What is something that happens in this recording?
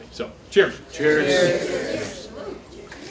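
A small group of men and women cheer together in a toast.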